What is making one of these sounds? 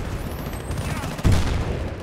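An automatic rifle fires a burst of shots.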